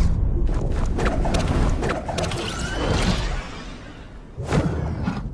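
Wind rushes loudly.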